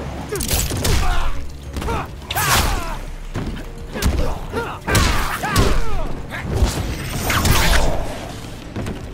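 Water splashes and sprays in loud bursts.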